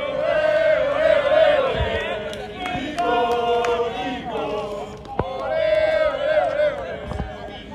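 A crowd of young men and women call out and chatter excitedly close by, outdoors.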